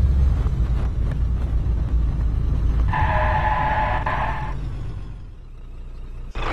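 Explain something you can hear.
A vehicle engine rumbles low and steady, then dies away.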